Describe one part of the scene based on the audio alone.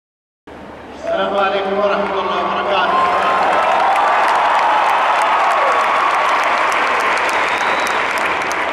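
A crowd sings together over loudspeakers in a large echoing arena.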